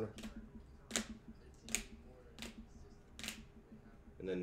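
A plastic card case clicks and taps in hands.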